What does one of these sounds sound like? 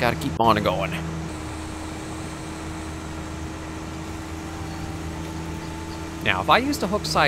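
A truck engine hums steadily on a dirt road.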